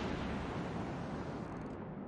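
Shells crash and splash into the sea nearby.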